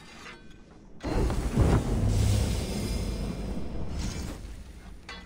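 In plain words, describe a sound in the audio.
A deep metallic whoosh swells and rumbles.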